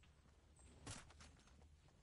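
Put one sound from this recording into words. Footsteps patter as a game character runs.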